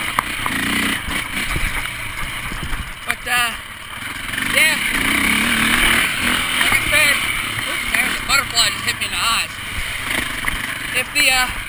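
A dirt bike engine revs and drones up close.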